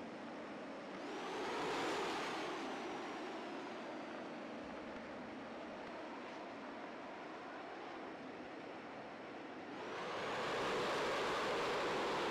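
An aircraft engine roars louder as it surges.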